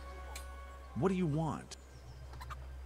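A middle-aged man asks a short question gruffly.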